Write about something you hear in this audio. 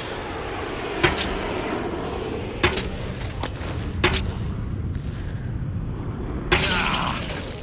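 A bow string snaps sharply as arrows are shot.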